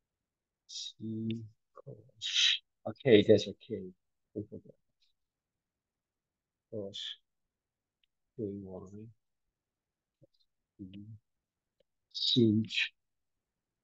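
A man speaks calmly, in short phrases with pauses.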